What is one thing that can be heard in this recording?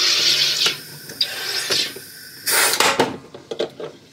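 A soda maker hisses in loud bursts as gas is pumped into a bottle.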